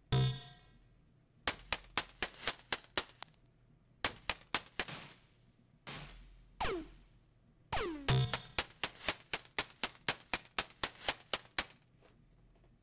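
An electronic drum beat plays in short bursts.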